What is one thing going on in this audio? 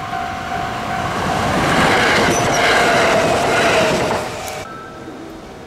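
An electric express train passes at speed.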